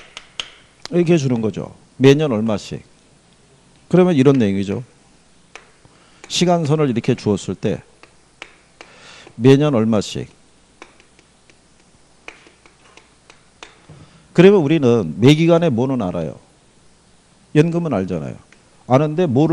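A middle-aged man lectures with animation through a microphone, in short bursts with pauses.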